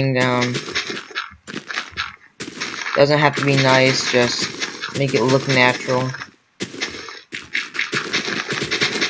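Dirt crunches in short bursts as blocks are dug out.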